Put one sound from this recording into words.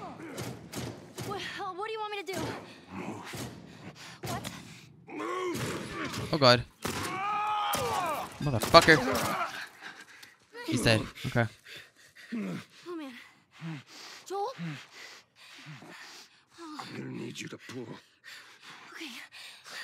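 A man groans and speaks hoarsely, close by.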